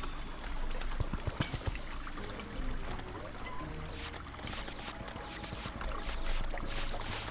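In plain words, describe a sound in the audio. Quick game hit and digging sounds click and thud repeatedly.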